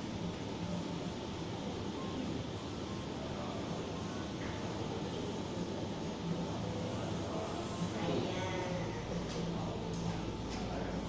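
A body slides slowly across a hard floor.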